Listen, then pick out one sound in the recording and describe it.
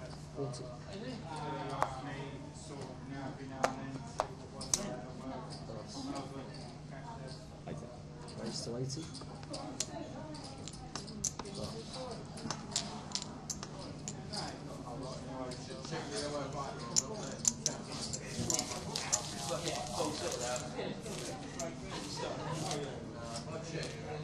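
Poker chips click against one another.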